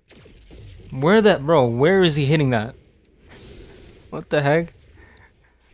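A young man speaks close to a microphone with animated, sliding exclamations.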